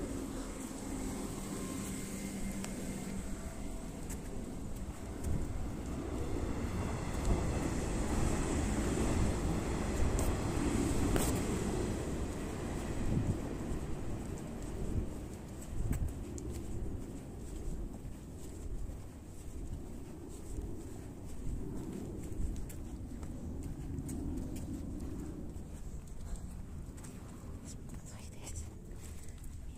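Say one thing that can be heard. Clothing rustles as a woman walks.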